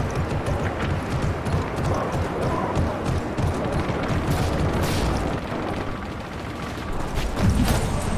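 Footsteps thud quickly as a soldier runs.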